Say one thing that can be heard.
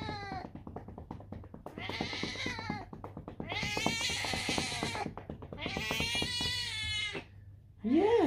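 A man pats a cat's back with quick rhythmic slaps.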